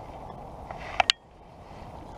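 A fishing reel clicks sharply as a line is cast.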